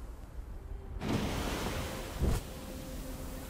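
A small animal splashes into water.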